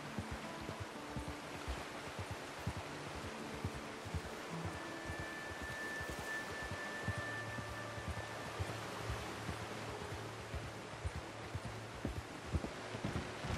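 A horse's hooves clop steadily on a dirt path.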